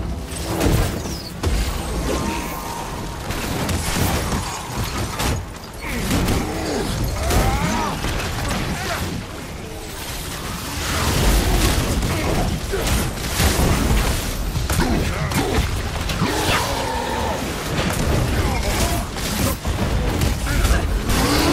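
Explosive blasts boom and crackle.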